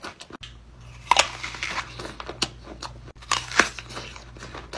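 A man bites and crunches into a crisp apple.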